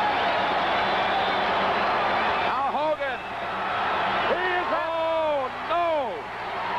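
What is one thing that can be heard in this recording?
A large crowd cheers and shouts in an echoing arena.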